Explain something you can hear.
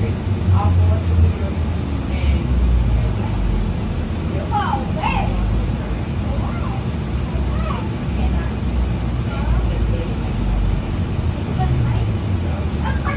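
A bus engine rumbles low and steady while the bus drives along.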